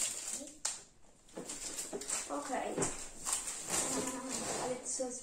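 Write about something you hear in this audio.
Cards rustle and shuffle in hands.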